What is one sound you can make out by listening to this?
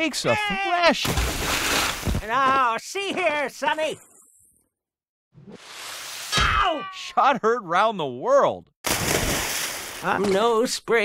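A character splashes heavily into water.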